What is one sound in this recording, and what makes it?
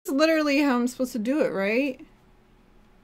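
A young woman speaks into a microphone with animation.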